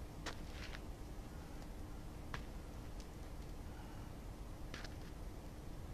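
A rope smacks lightly on the ground.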